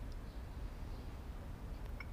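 A porcelain teacup clinks onto a saucer.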